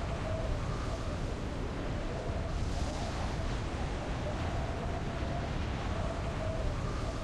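Wind rushes past in a loud, steady roar.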